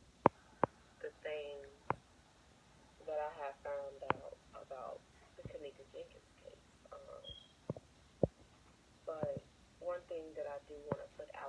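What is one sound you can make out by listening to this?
A young woman talks casually over a video call, heard through small speakers.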